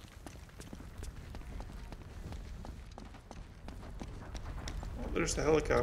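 Footsteps run over rubble and gravel.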